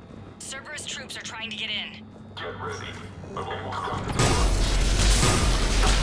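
A heavy metal door slides open.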